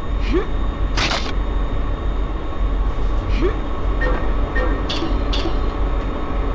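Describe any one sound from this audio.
A short game chime sounds as an item is collected.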